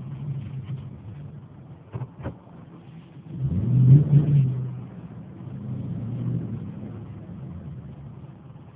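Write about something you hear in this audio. A car engine hums steadily while driving, swelling into a louder rev for a moment.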